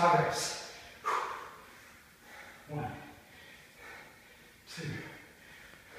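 A man exhales sharply with each squat.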